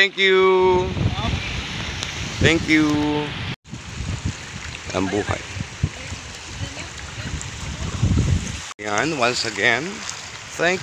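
Small waves wash onto a rocky shore.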